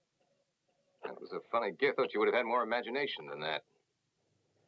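A man speaks firmly and clearly, close by.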